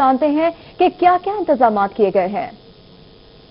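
A young woman speaks clearly into a microphone, like a news presenter.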